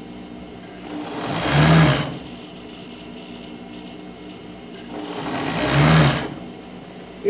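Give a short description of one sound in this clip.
A small machine whirs in short bursts.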